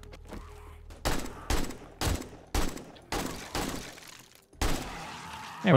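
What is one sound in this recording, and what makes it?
A rifle fires a series of loud shots indoors.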